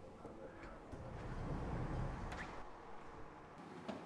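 A heavy door slides open.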